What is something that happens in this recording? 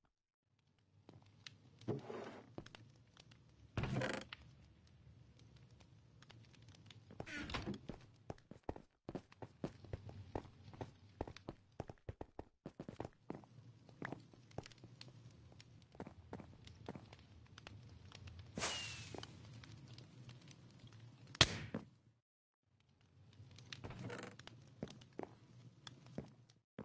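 Footsteps tap steadily across a hard floor.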